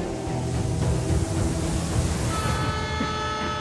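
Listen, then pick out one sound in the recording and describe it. Water sprays and splashes with a loud hiss.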